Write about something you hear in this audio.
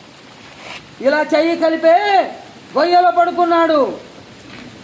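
A middle-aged man sings loudly in long drawn-out notes close by.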